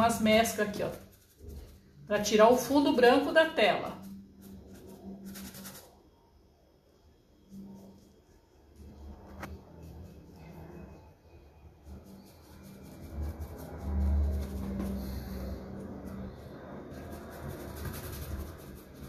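A paintbrush softly brushes across canvas.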